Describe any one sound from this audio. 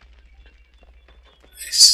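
A metal door handle rattles.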